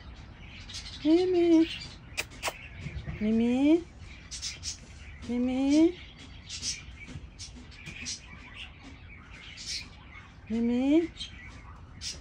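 A cat meows loudly several times, close by.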